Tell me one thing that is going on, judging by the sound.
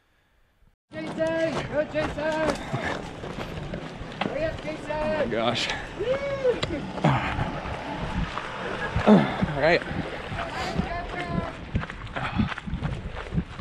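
Running footsteps crunch on gravel.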